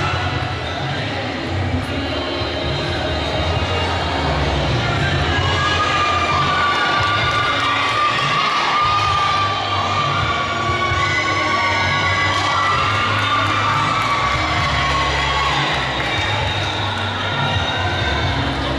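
Music plays loudly through loudspeakers in a large echoing hall.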